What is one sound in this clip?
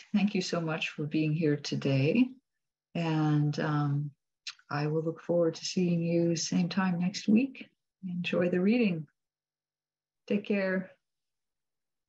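A middle-aged woman speaks warmly and cheerfully over an online call.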